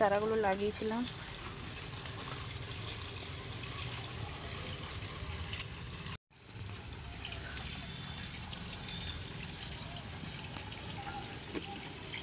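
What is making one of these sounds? Water pours from a watering can and patters steadily onto soil.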